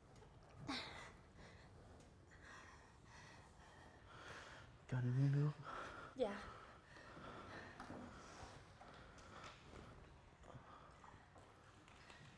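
A young man groans weakly, close by.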